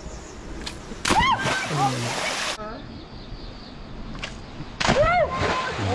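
A body plunges into water with a loud splash.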